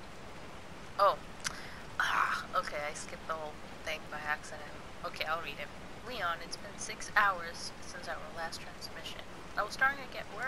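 A young woman speaks calmly over a radio.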